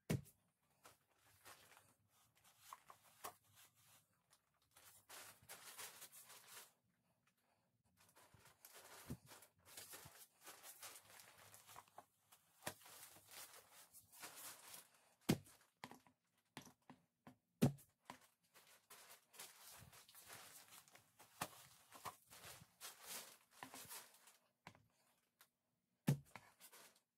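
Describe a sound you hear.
A wooden brush handle knocks against a hard surface.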